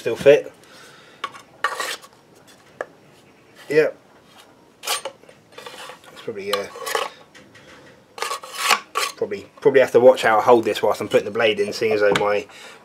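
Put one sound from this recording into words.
A metal blade scrapes and rasps against a tool in short strokes.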